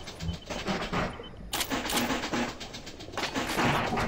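Menu clicks tick as items are picked out.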